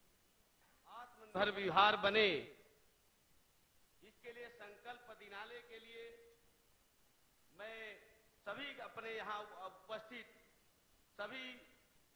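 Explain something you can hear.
A man speaks firmly into a microphone in bursts.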